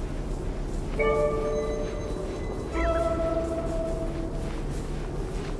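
A bright, musical chime rings out twice, each time fading.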